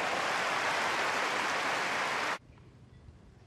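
A large crowd applauds loudly, then stops abruptly.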